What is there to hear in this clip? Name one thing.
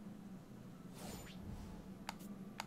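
A shimmering game sound effect swooshes in.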